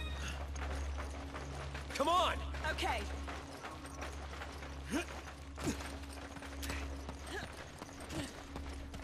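Footsteps run quickly.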